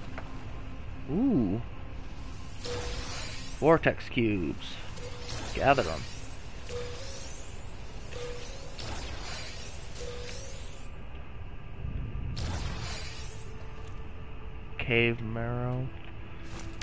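Short electronic chimes ring out now and then.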